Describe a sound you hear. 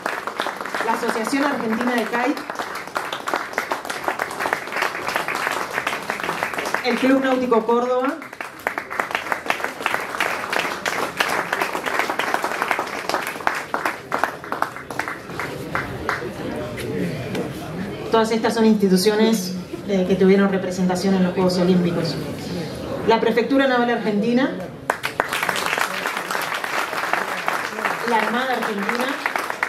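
A woman speaks into a microphone, amplified through loudspeakers in an echoing hall.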